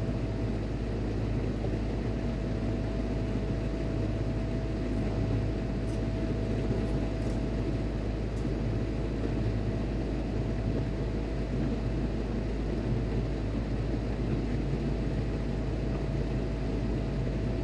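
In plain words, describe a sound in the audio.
Thick fabric rustles as it is handled.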